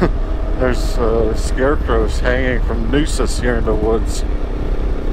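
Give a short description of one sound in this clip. A man speaks with animation close to a helmet microphone.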